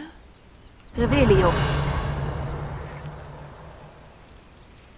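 A magic spell crackles and shimmers with a sparkling whoosh that slowly fades.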